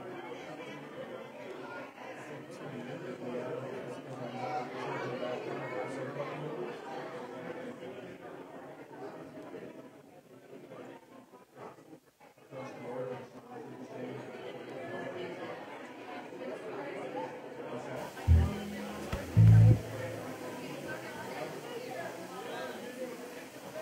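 A crowd of people talks quietly nearby.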